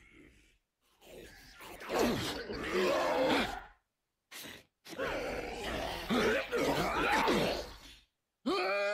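A creature snarls and shrieks loudly, close by.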